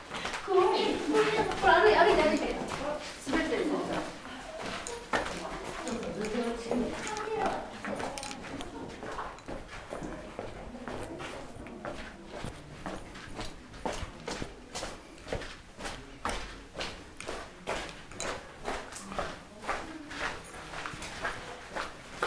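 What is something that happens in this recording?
Footsteps crunch on a gritty floor in an echoing cave.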